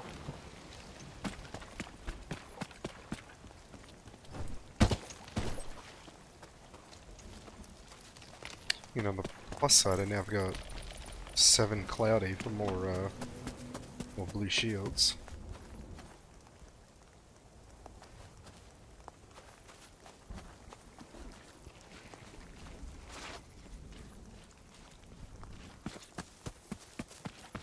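Footsteps tap steadily on the ground.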